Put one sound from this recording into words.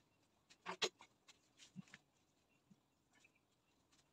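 A wooden board is set down with a soft knock.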